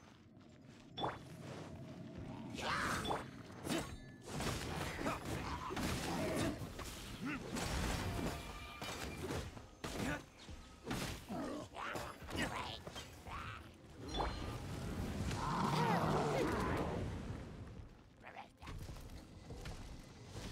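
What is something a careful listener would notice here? Blades swish and spells burst with sharp hits in a fast game fight.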